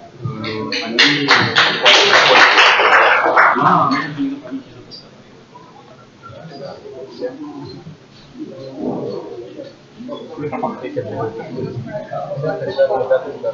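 A crowd of young men and women chatters nearby.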